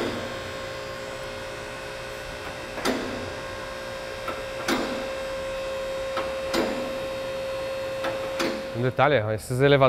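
An electric car lift hums steadily as it lowers a load.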